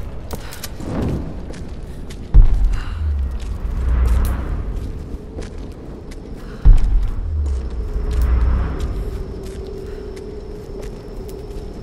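Footsteps scuff over rock.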